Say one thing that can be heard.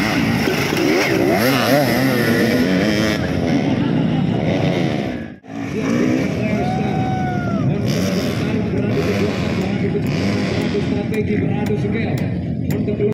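Dirt bike engines whine and roar as riders race past.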